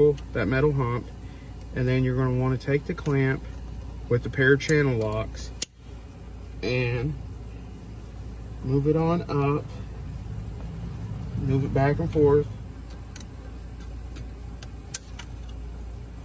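Pliers click and scrape against metal.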